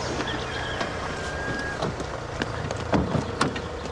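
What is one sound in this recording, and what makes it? Footsteps crunch on gravel outdoors.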